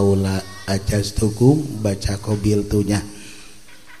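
An elderly man speaks slowly into a microphone, heard through a loudspeaker.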